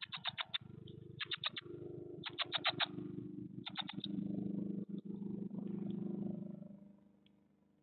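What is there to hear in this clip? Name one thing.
Nestlings rustle and shuffle in dry nesting material.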